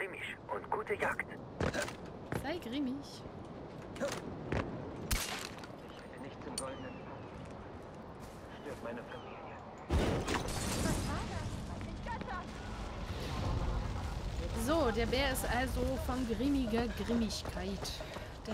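A woman talks into a microphone in a casual, chatty way.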